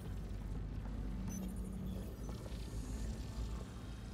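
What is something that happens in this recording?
Footsteps clank on a hard metal floor.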